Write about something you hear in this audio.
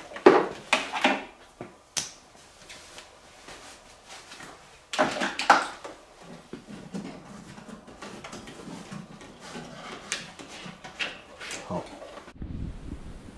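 Small plastic parts click and rattle by hand.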